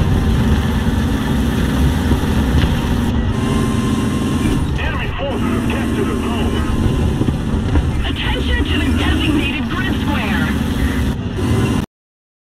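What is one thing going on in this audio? A tank engine rumbles as the tank drives.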